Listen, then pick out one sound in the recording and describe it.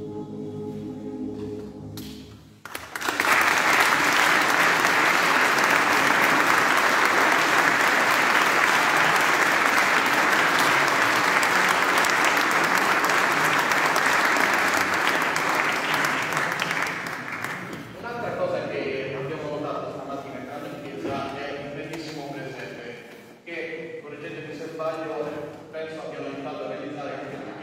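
A men's choir sings in harmony in a large echoing hall.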